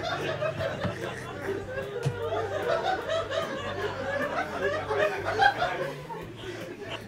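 A man laughs heartily into a microphone.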